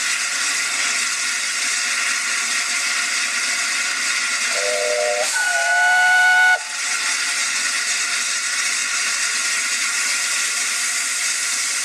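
A steam locomotive hisses loudly and steadily close by.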